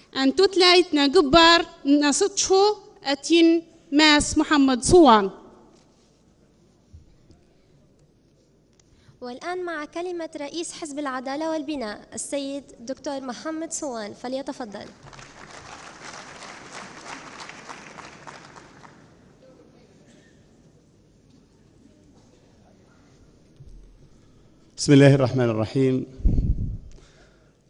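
A woman speaks loudly and expressively into a microphone in a large hall.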